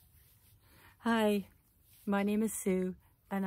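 A middle-aged woman speaks brightly and close by, outdoors.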